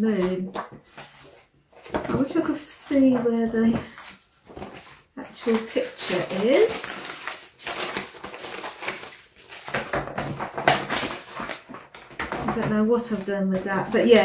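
Paper and fabric rustle as they are handled.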